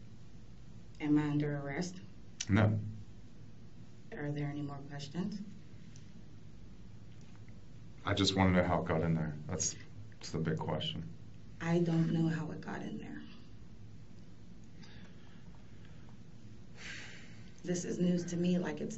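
A man asks questions calmly.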